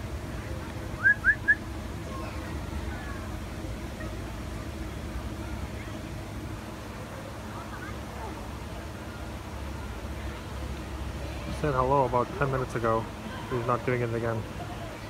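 A parrot makes short chirps and low chattering calls close by.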